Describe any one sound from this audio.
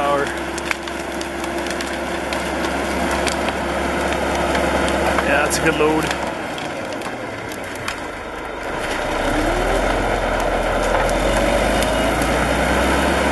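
Branches crack and snap as a bulldozer pushes through brush.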